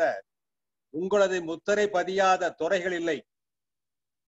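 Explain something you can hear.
An elderly man speaks over an online call.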